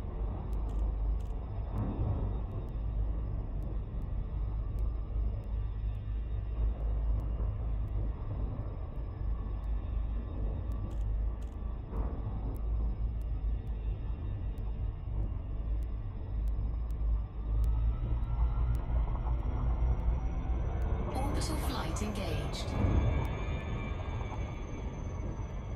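A spaceship's engine hums low and steady.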